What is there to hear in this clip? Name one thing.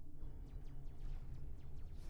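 Laser cannons fire in short zaps.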